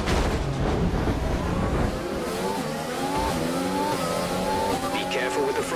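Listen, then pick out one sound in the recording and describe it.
Other racing car engines roar close by.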